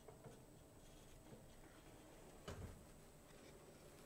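An oven door swings shut with a soft thud.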